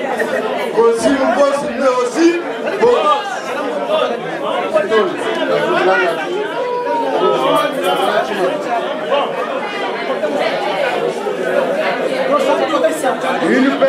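A crowd of people chatter and call out in a room.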